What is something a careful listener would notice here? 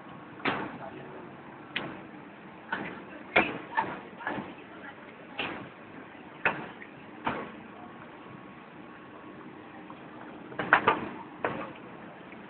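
Traffic rumbles past on a street outdoors.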